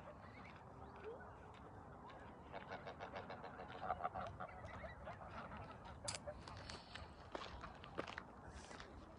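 Wind blows across open ground.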